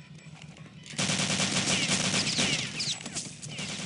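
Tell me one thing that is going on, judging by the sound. A submachine gun fires a rapid burst of shots.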